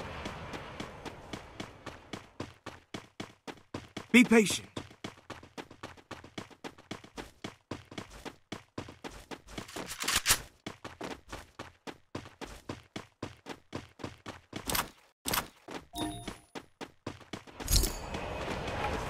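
A game character's footsteps patter rapidly while running on grass.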